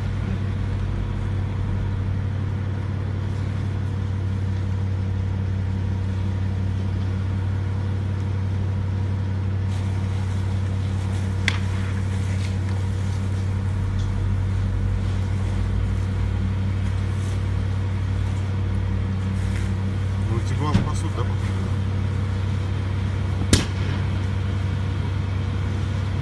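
A fire crackles and pops in the distance outdoors.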